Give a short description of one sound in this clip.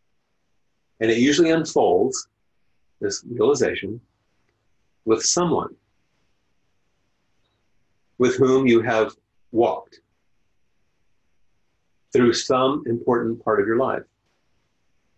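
An elderly man speaks calmly and slowly into a microphone, with long pauses, heard through an online call.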